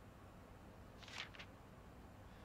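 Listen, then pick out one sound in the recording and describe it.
A soft menu click sounds once.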